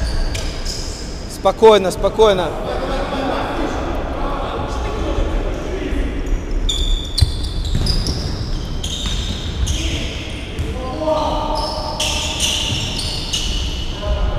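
Players' shoes squeak sharply on a hard floor in a large echoing hall.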